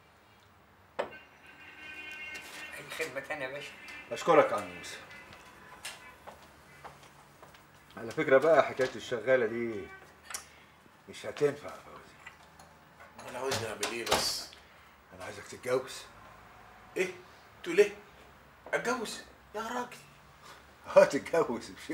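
Middle-aged men talk calmly nearby.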